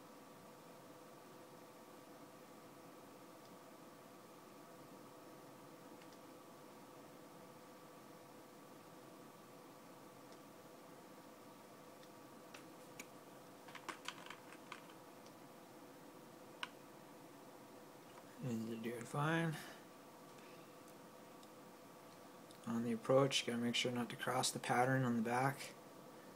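A steady electronic hum drones throughout.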